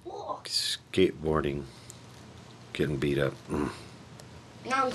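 A middle-aged man talks close to the microphone.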